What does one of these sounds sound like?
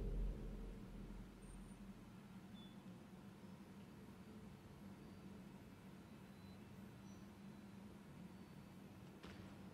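A heavy sliding door slowly rumbles open.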